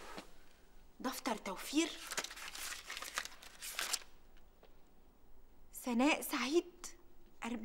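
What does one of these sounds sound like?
A woman speaks with feeling, close by.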